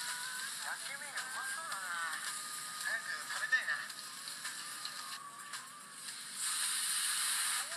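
Meat sizzles on a hot griddle.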